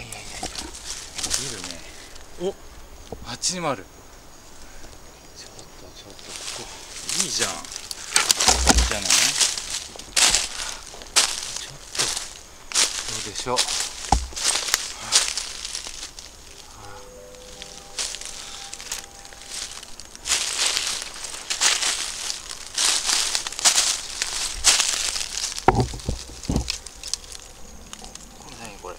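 Footsteps crunch through dry leaves on the ground.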